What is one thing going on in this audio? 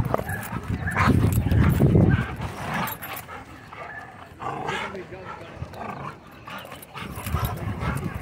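Dogs pant close by.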